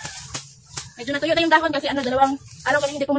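A young woman laughs loudly close by.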